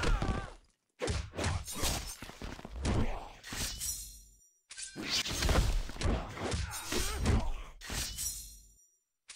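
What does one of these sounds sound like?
Magic blasts burst and crackle.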